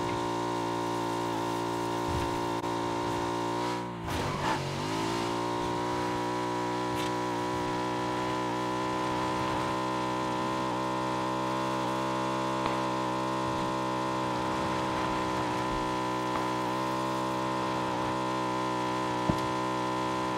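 A motorbike engine drones steadily at high revs, dipping briefly and then rising again.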